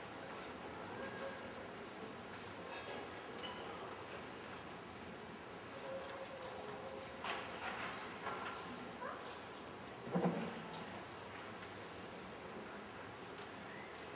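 Metal vessels clink softly on a table in an echoing room.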